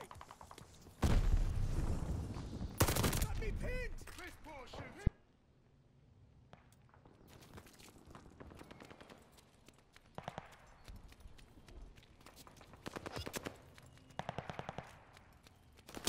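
A rifle fires loud, rapid bursts of shots.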